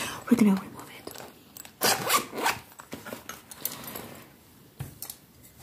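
Hands handle and tap a hard plastic case.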